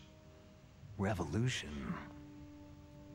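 A younger man asks a short question in a low, gruff voice.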